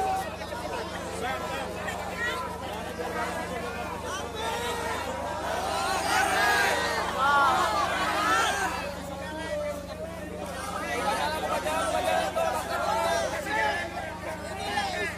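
A large crowd of men and women talks and calls out loudly all around, close by.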